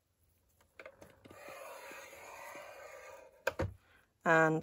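A tool scores a firm line into paper with a soft scraping sound.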